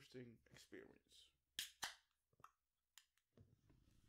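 A can snaps and hisses open.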